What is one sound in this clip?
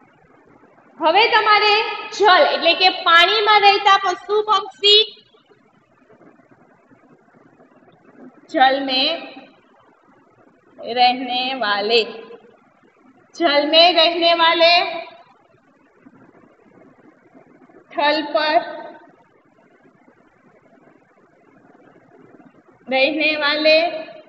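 A young woman speaks clearly and calmly, close by, in short phrases with pauses.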